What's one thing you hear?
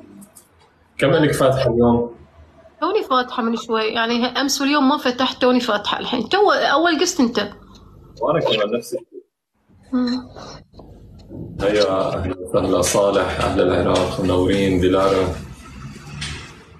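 A young man speaks casually through a phone microphone.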